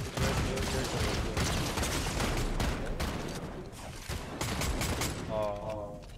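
Rapid gunshots crack in a video game.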